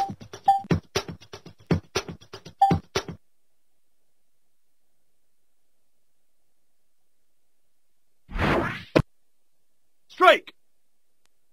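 Short cartoon game sound effects pop and jingle.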